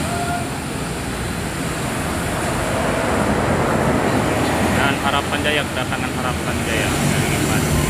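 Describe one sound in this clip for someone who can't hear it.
A large bus engine roars as the bus drives past close by.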